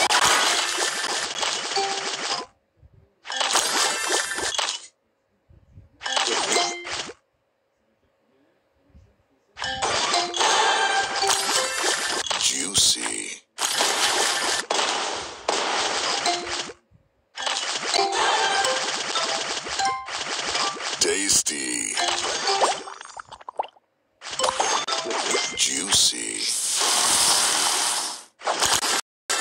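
Bright electronic chimes and pops play in bursts.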